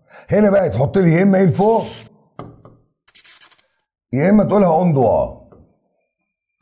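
An elderly man speaks calmly and clearly into a close microphone.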